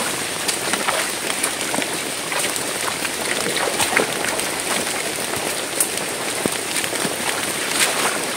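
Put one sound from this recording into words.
A person wades through shallow water, splashing.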